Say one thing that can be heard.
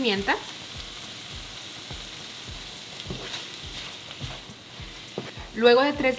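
A wooden spatula scrapes and stirs food in a frying pan.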